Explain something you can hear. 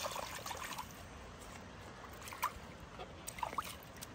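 Water splashes as young children step through shallow water.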